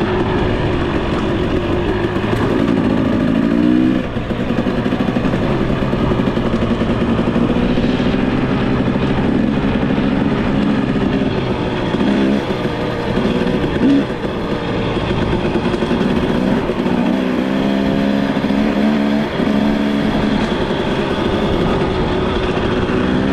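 A dirt bike engine hums and revs up and down close by.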